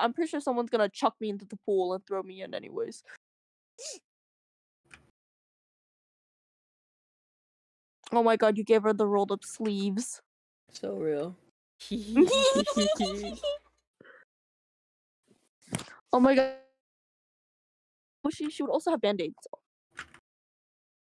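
A young woman talks with animation into a microphone, in bursts with pauses.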